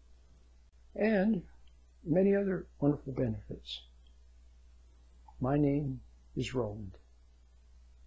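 An elderly man speaks calmly and close to the microphone, in short phrases with pauses.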